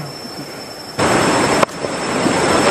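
Water from a stream rushes and splashes nearby.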